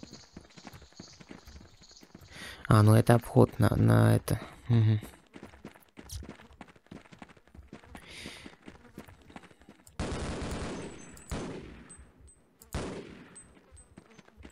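Footsteps shuffle over sand.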